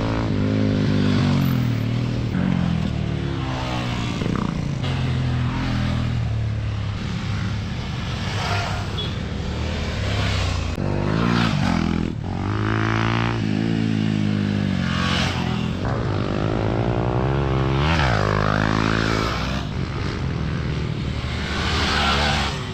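Tyres spray loose dirt as bikes skid through a turn.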